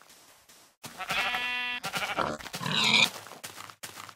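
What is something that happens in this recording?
A pig squeals and grunts.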